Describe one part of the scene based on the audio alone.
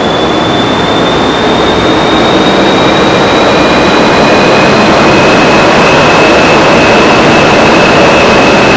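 A spinning propeller roars with a loud steady rush of air and a high whine.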